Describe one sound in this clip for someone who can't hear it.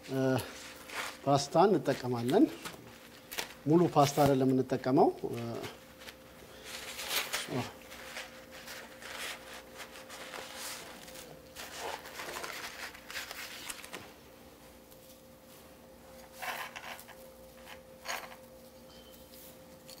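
Utensils clink against a dish.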